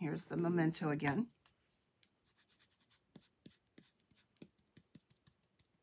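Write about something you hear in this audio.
An ink pad taps and dabs on paper.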